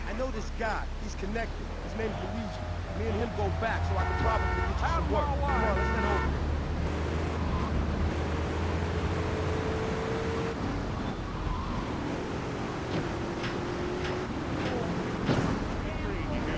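A car engine hums and revs as a car drives along a street.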